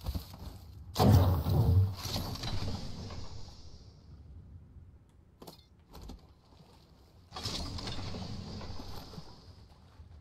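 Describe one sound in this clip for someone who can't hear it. A metal supply crate opens with a loud mechanical clank and whoosh.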